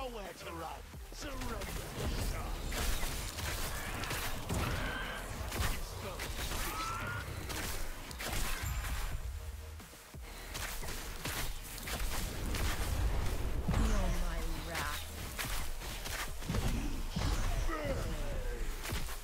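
Weapons clash and strike creatures in quick, repeated hits.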